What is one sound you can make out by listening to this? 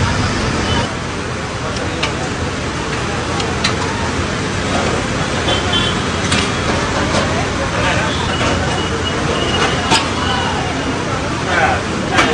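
A metal spatula scrapes and taps on a griddle.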